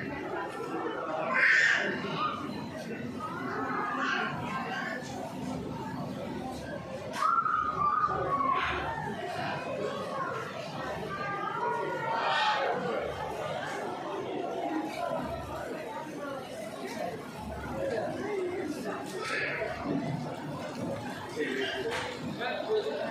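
A crowd of people chatter in a large echoing indoor hall.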